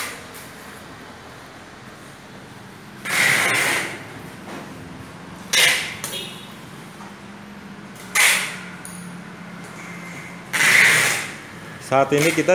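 An electric device hums steadily.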